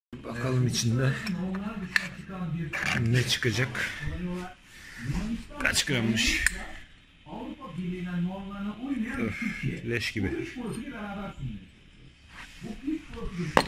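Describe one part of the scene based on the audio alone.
Metal parts clink and scrape as they are handled.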